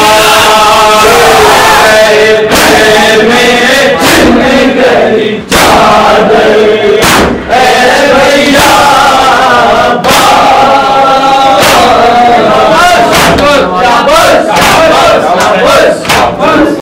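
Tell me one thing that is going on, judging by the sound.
Men beat their chests with their hands in a steady rhythm.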